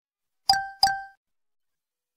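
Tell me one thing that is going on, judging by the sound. Two quick electronic beeps sound from a game.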